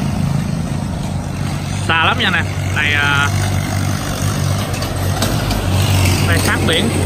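A tractor engine chugs steadily and draws closer.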